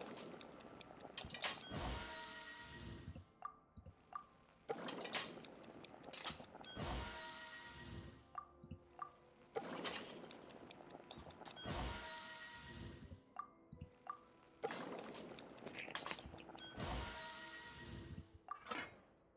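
Food sizzles in a pot over a fire, in bursts.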